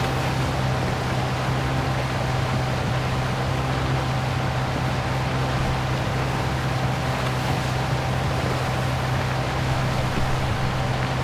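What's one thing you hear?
Water rushes and splashes against a boat's hull.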